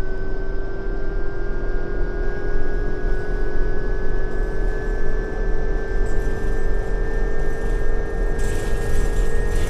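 A bus engine drones steadily and slowly rises in pitch.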